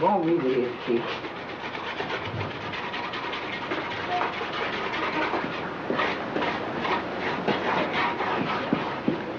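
Gritty material scrapes and rattles under a man's hands.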